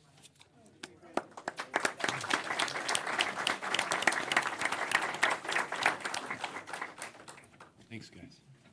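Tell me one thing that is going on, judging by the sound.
A crowd applauds in a room.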